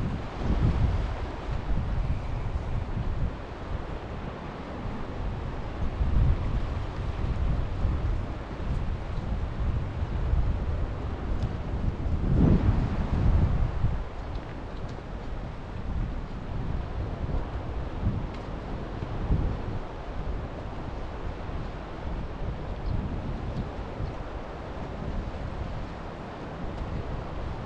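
Wind blows and rumbles outdoors in gusts.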